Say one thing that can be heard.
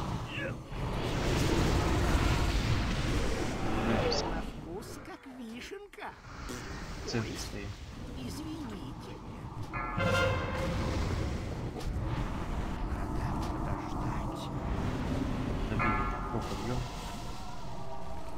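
Magic spells crackle and burst amid a noisy battle.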